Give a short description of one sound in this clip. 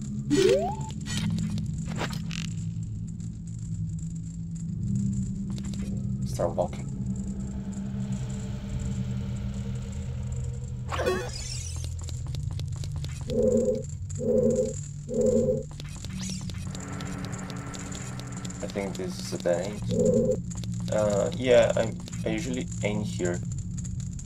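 Steady video game music plays throughout.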